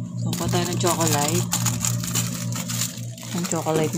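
A refrigerator hums steadily.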